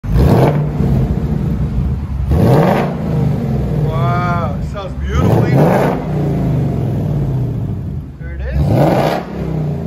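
A car engine revs up sharply several times.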